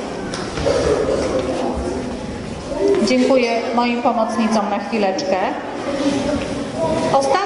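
A young woman speaks with animation into a microphone, heard through a loudspeaker in an echoing hall.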